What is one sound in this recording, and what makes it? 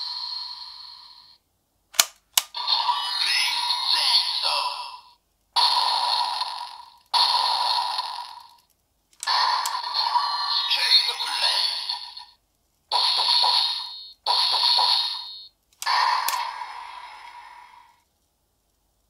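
A toy weapon plays loud electronic sound effects and music through a small speaker.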